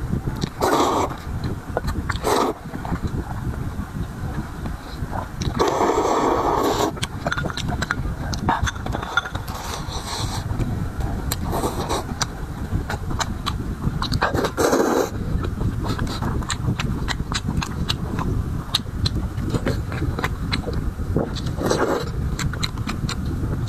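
Chopsticks clink against a ceramic bowl.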